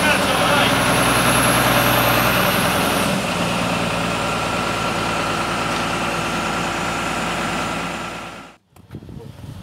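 A heavy machine engine drones loudly and steadily.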